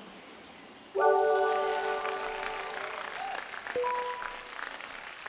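A bright electronic chime plays a short rising jingle.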